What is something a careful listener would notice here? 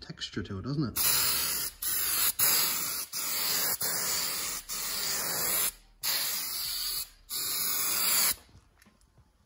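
A spray can hisses in long bursts, close by.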